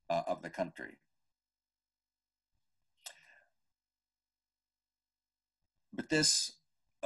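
An elderly man speaks calmly through an online call, with long pauses.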